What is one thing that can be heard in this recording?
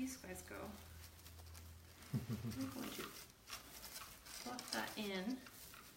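A middle-aged woman talks calmly and close by.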